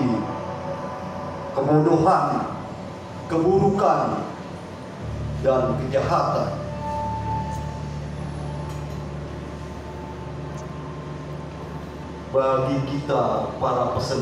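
A woman reads aloud into a microphone through a loudspeaker, in an echoing room.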